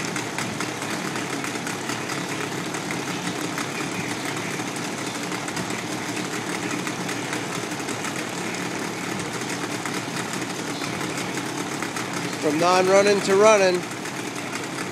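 A two-stroke outboard motor idles in a test tank.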